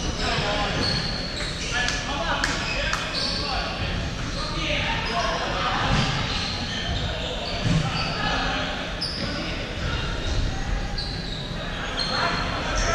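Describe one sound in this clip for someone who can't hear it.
Players shout to each other across an echoing hall.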